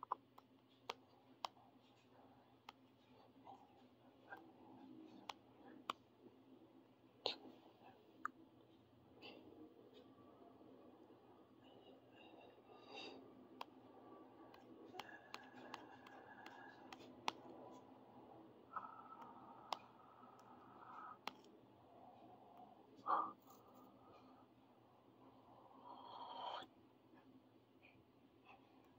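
Buttons click sharply now and then.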